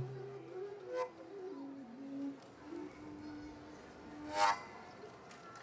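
A large wooden flute plays a slow, low melody close by.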